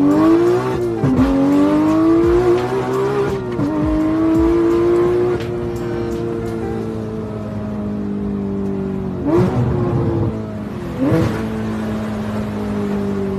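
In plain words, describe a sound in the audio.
A sports car engine roars loudly, climbing in pitch and dropping sharply with each gear change.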